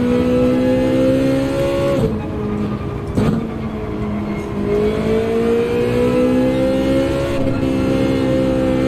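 A racing car engine revs high, drops briefly at each gear change and climbs again.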